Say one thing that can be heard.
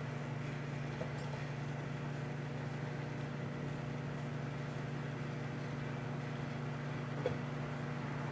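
Food pops and crackles inside a microwave oven.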